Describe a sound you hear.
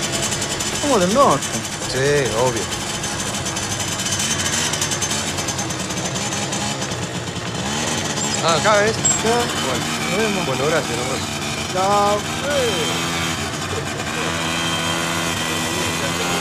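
A motorcycle engine hums steadily close by.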